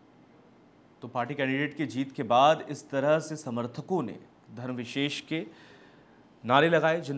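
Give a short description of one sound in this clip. A man speaks clearly and steadily into a microphone.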